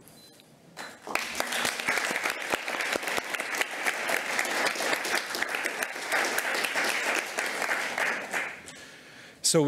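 An audience applauds in a large room.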